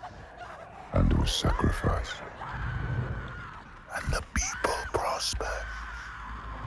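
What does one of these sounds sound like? A young woman screams in pain.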